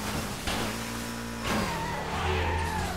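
A car crashes with a loud bang and scrape.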